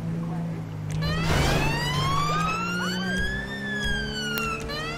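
A police siren wails, rising and falling in pitch.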